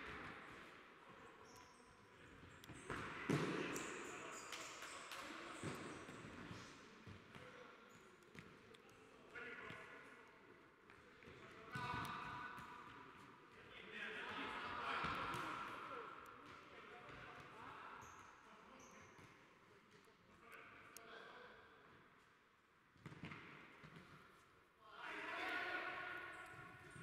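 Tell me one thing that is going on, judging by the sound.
A ball thuds as players kick it, echoing in a large hall.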